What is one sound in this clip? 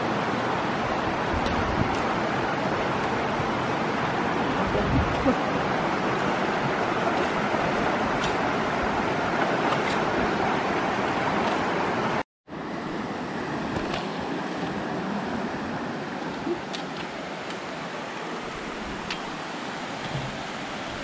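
A shallow stream rushes and babbles over rocks.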